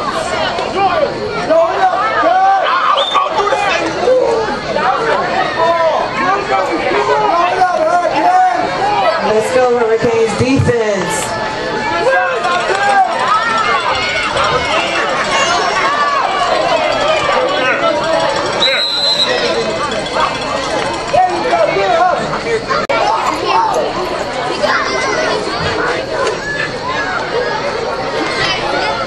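A crowd of spectators talks and calls out nearby outdoors.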